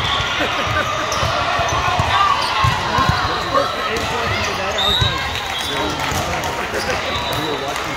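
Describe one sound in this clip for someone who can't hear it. A crowd of girls and spectators chatters and shouts, echoing through a large hall.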